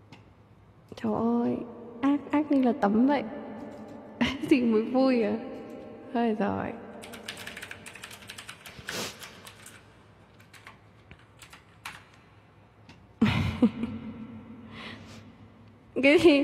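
A young woman speaks softly and playfully, close to a microphone.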